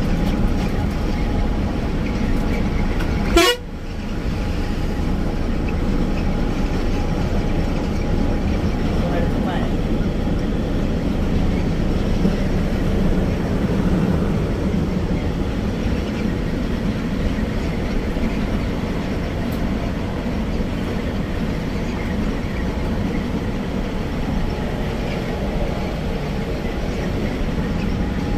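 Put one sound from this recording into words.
A bus engine rumbles steadily as it drives along at speed.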